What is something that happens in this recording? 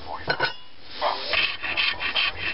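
A rasp scrapes against wood in short strokes.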